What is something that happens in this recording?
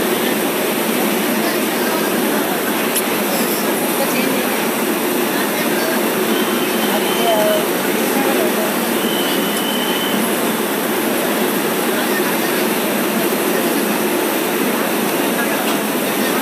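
A passenger train rolls steadily past with a loud rumble and clatter of wheels on rails.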